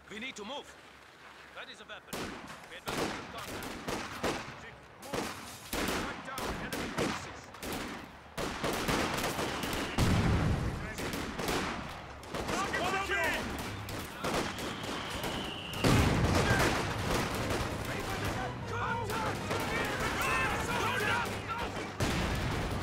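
Gunfire crackles in short bursts throughout a battle.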